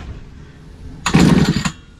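A starter cord is yanked on a small engine with a rough whirring rattle.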